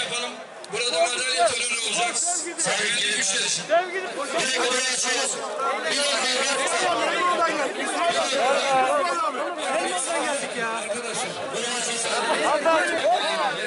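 A large crowd of men talks and shouts all around, close by, outdoors.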